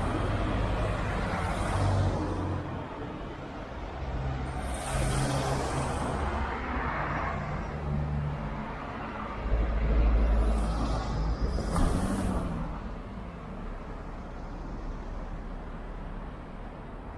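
Cars drive past on a street.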